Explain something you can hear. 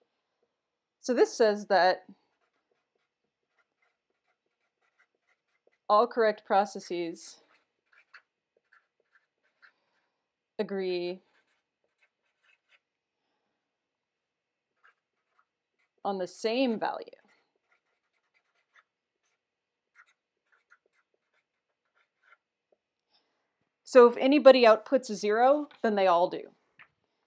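A young woman speaks calmly into a close microphone, in short phrases with pauses.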